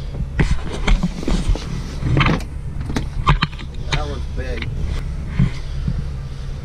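Fishing gear clicks and clatters as it is handled close by.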